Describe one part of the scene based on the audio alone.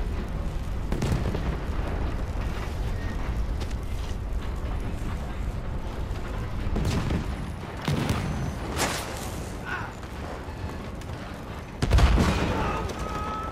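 Gunshots crack loudly and echo.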